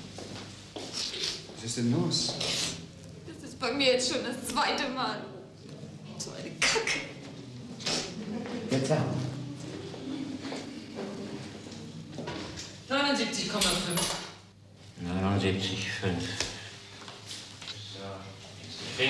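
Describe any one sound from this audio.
A middle-aged man talks urgently nearby.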